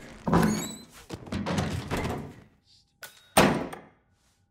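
A heavy body thuds into a wooden crate.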